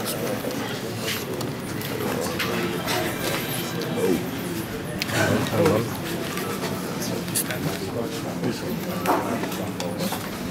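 A crowd of men talks over one another close by.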